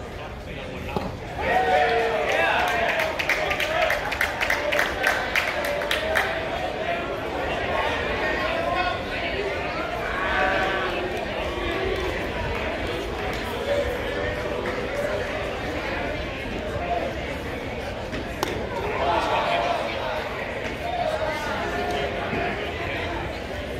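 Men shout and chatter across an open ball field.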